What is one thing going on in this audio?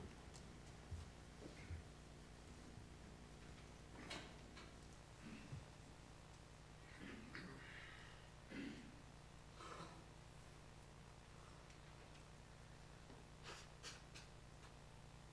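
A man speaks quietly at a distance in a large echoing hall.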